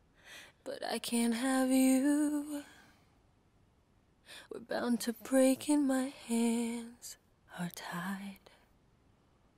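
A man sings a slow, tender melody.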